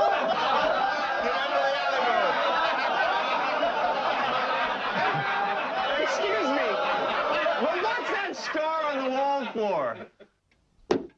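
A crowd of men laughs and chatters noisily in an echoing room.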